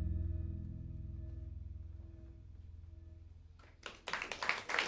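A jazz band plays a soft, sustained chord that fades out.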